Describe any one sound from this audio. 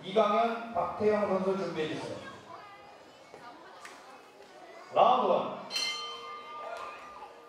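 A man announces loudly through a loudspeaker in an echoing hall.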